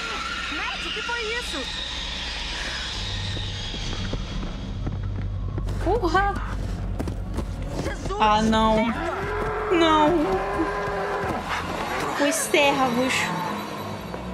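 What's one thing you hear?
A young man calls out in a game, heard through speakers.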